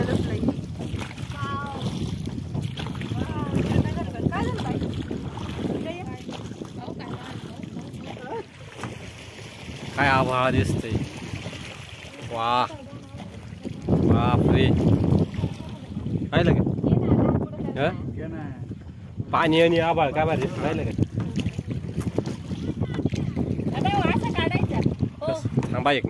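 Water splashes and laps against a moving boat.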